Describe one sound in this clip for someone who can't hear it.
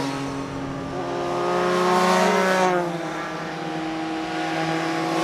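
Motorcycle engines drone steadily.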